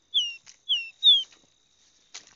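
A caboclinho seedeater sings three short down-slurred whistles.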